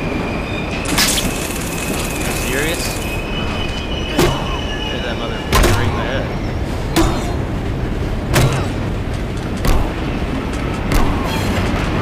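A metal pipe strikes a man with heavy thuds.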